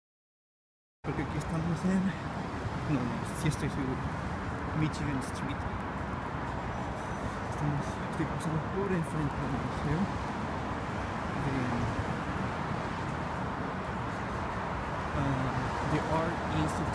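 Cars drive past on a busy city street.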